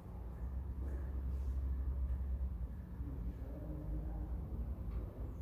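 A brass band plays a tune in a large echoing hall.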